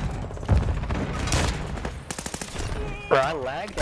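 A rifle fires in quick bursts of loud shots.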